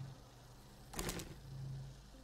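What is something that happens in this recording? A short electronic click sounds.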